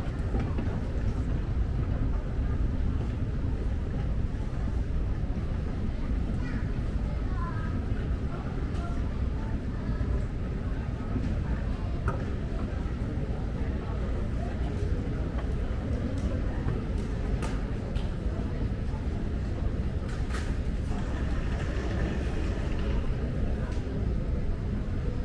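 A moving walkway hums and rumbles steadily.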